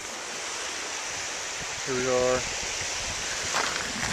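Small waves lap gently on a riverbank.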